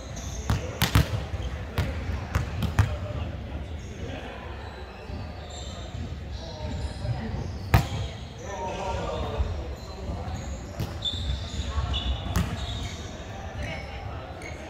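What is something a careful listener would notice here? A volleyball thumps off hands and arms in a large echoing hall.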